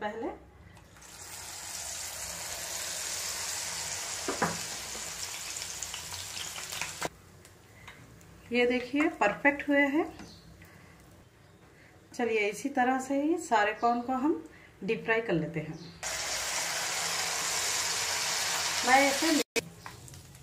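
Hot oil sizzles and hisses loudly as food drops into a pan.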